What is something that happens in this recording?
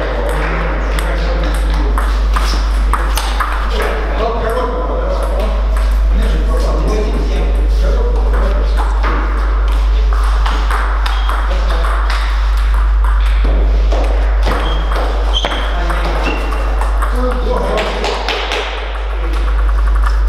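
Table tennis balls click back and forth on tables and bats in a large echoing hall.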